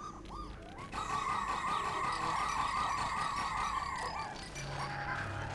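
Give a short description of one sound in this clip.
Small creatures chirp and squeak in a busy chorus.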